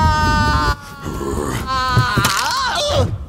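An elderly man exclaims in a gruff voice.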